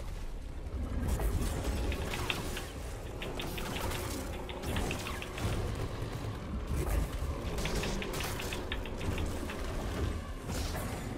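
Lightsabers clash with crackling sparks.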